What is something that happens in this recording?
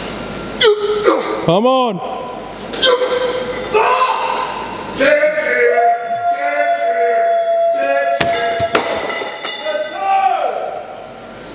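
A man grunts and strains loudly.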